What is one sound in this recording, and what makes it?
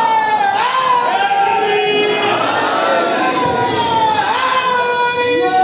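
A man sings or chants in a long, drawn-out melodic voice through a microphone and loudspeakers in an echoing hall.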